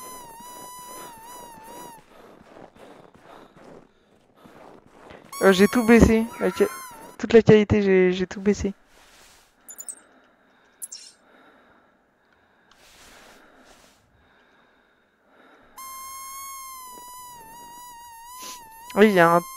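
A high electronic tone hums steadily from a handheld detector.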